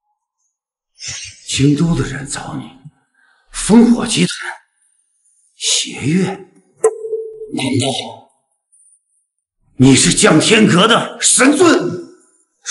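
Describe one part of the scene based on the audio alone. An older man speaks with growing agitation, close by.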